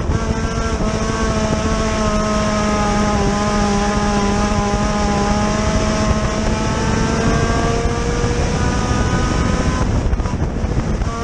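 Tyres rumble and scrabble over loose dirt.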